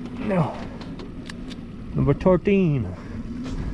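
A hand tally counter clicks.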